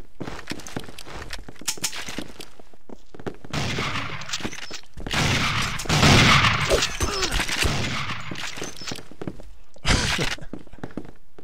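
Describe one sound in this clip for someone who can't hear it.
Footsteps thump quickly on wooden floors.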